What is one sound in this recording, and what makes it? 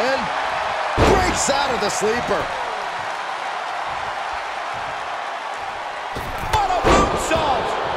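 Heavy thuds ring out as wrestlers slam onto the ring mat.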